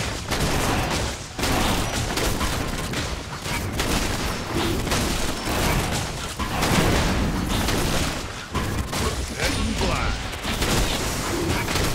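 A large winged creature beats its wings.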